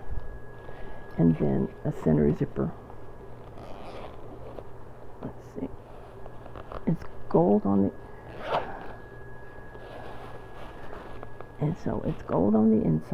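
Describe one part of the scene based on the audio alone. Fabric rustles as a hand rummages inside a bag.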